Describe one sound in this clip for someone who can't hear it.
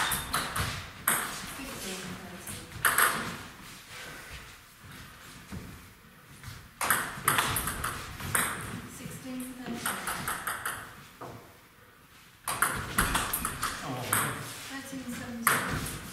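A table tennis ball clicks rapidly back and forth off paddles and the table in an echoing hall.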